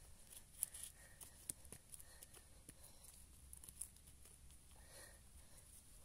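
Clumps of dirt crumble and patter as they are tossed aside.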